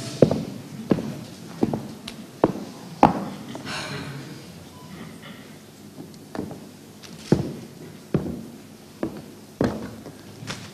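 Footsteps knock on a wooden stage floor in a large hall.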